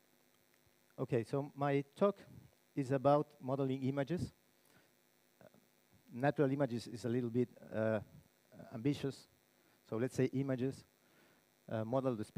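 A man speaks calmly into a microphone, heard over loudspeakers in a large hall.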